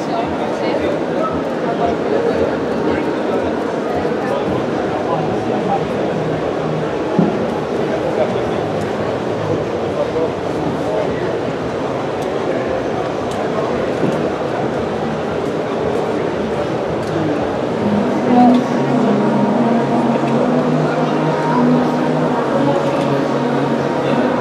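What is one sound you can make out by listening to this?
A crowd of people chatters in a large, echoing hall.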